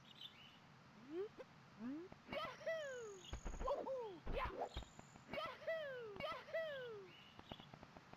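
Short bouncy cartoon jump sounds play in quick bursts.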